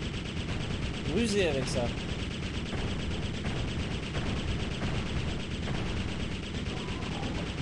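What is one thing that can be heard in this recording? A game weapon fires repeatedly with a crackling blast.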